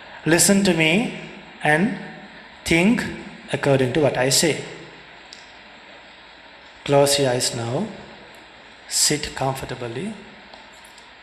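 A young man speaks calmly into a microphone, in short phrases with pauses.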